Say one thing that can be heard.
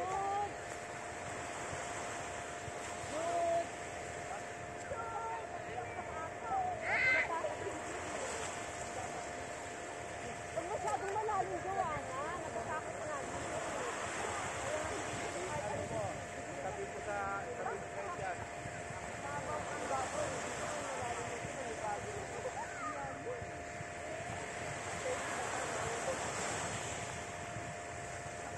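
Young men and women chatter and call out far off in the water.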